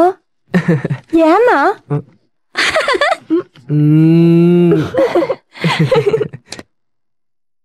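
A young man talks playfully close by.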